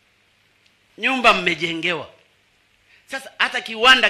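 An elderly man speaks into a microphone over loudspeakers, in short phrases with long pauses.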